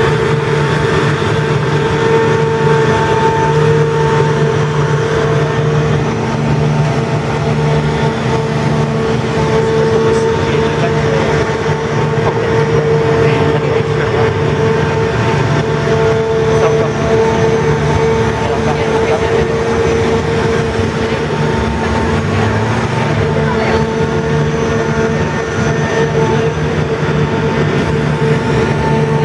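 Hydraulic joints creak and whir as a giant mechanical elephant moves.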